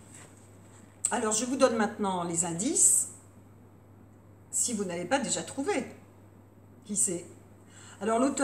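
A woman reads aloud expressively, close by.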